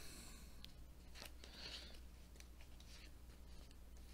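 A playing card slides and taps against a tabletop.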